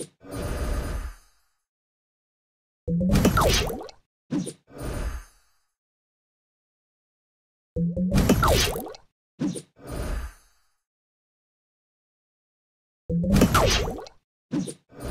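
Game sound effects chime and whoosh as tiles clear.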